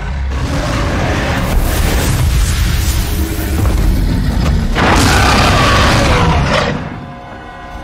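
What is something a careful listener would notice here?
A huge creature lets out a deep, thundering roar.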